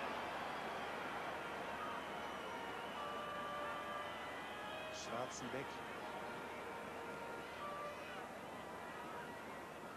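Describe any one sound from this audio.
A distant stadium crowd murmurs and whistles.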